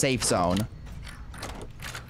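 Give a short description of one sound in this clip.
A key turns and clicks in a door lock.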